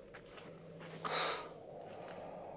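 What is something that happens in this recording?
A man sighs heavily.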